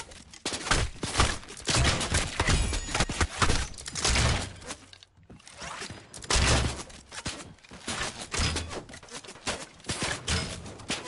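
A bow twangs as arrows are loosed.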